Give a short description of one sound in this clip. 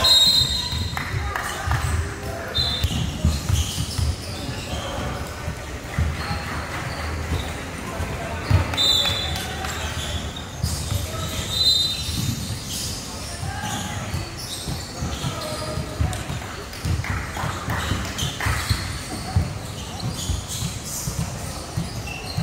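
A basketball bounces on a wooden court, echoing through a large hall.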